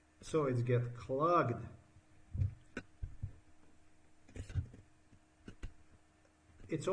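A man speaks calmly and close to a microphone, pausing between phrases.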